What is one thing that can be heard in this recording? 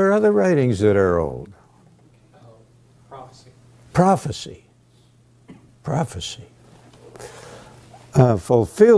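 An elderly man speaks with feeling into a microphone, pausing between phrases.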